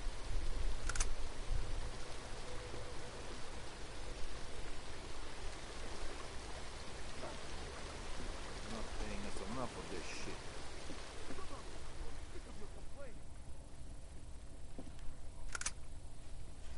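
Short sharp clicks and knocks sound now and then.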